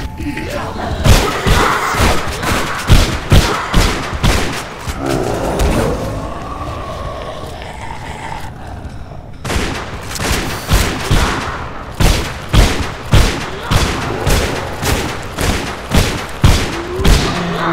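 A shotgun fires in loud, rapid blasts.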